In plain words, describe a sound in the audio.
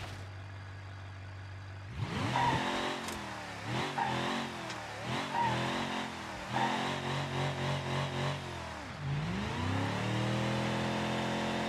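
A car engine idles, then revs up and down repeatedly.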